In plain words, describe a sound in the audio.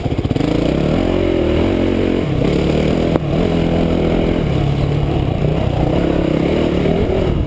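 A dirt bike engine revs and drones up close, rising and falling in pitch.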